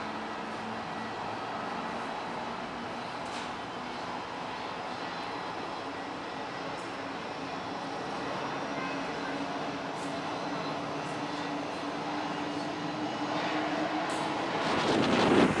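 A jet airliner roars loudly as it takes off and climbs away.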